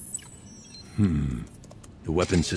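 A computer console sounds a low buzzing error tone.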